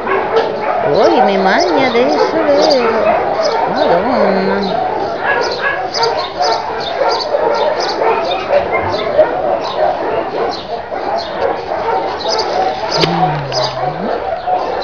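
A puppy whines and yelps in short, high cries.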